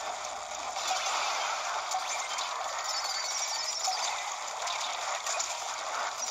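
Video game sound effects of splattering and firing play through a small tablet speaker.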